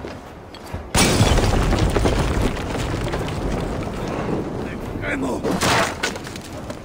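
Wooden planks smash and splinter loudly.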